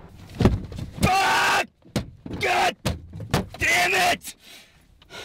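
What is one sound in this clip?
A young man shouts angrily up close.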